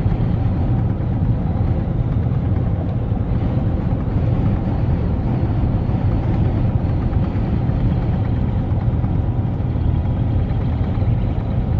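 Tyres roar steadily on a paved road.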